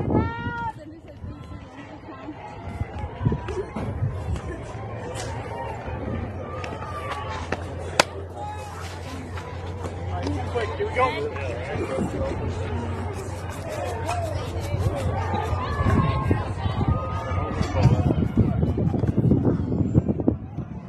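Young women shout and call out across an open outdoor field.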